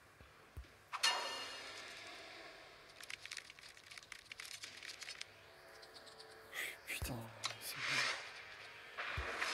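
Game cards swish and flip into place with chiming effects.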